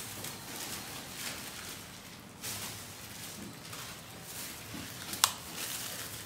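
Plastic bags rustle as a man handles them.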